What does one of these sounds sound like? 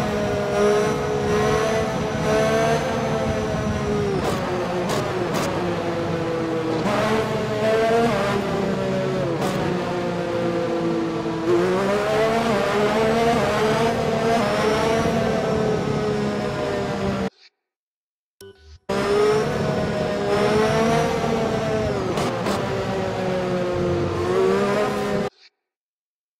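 A racing car engine whines loudly, its pitch rising and dropping sharply with each gear change.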